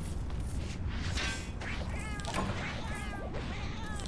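A pickaxe strikes rock with sharp metallic clinks.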